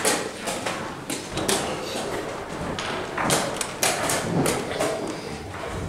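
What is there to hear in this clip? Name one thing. Wooden chess pieces click against a board.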